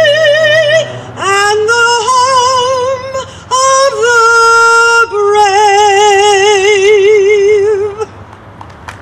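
A woman sings with a wavering voice through a microphone and loudspeakers outdoors.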